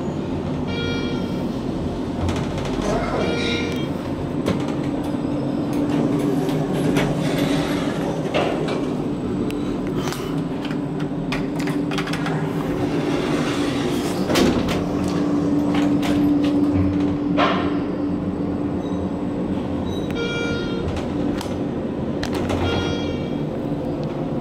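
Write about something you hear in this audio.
An elevator chime rings with short bright beeps.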